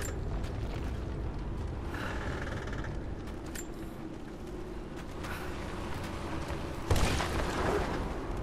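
A heavy cart rumbles over stone as it is pushed.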